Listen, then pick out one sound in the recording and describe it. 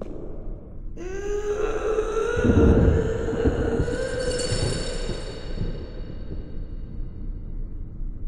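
A heavy door creaks slowly open.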